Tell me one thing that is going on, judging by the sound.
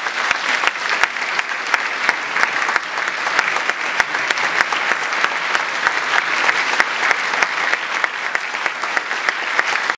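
A large audience applauds steadily in an echoing hall.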